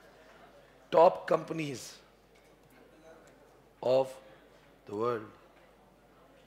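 A young man speaks calmly and close to a microphone, in short phrases.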